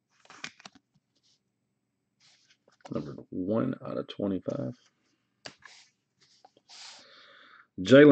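Trading cards rustle and slide softly as they are handled.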